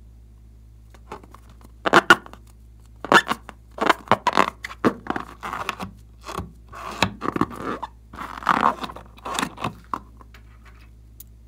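Hands squeeze and rub a rubber balloon, making it squeak.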